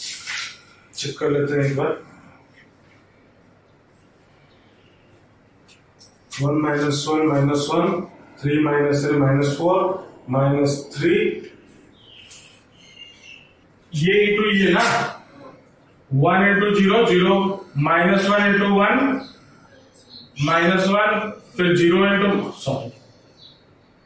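A man speaks steadily, explaining, close to the microphone.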